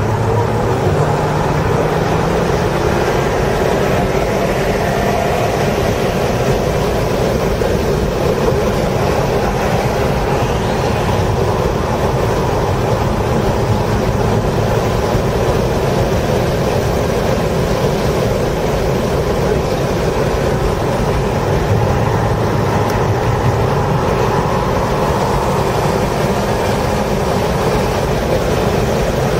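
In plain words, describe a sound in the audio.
A race car engine roars loudly from inside the cabin, rising and falling as it speeds up and slows down through corners.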